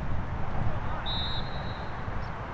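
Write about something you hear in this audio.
A referee's whistle gives a short blast.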